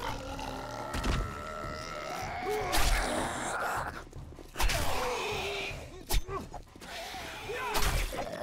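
A knife slashes and thuds into flesh.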